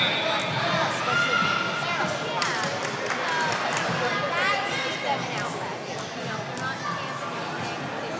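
A crowd of young people chatters and shouts in a large echoing hall.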